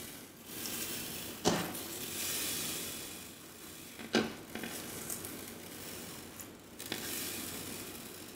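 Fingers squish and crackle through a soft bead-filled slime.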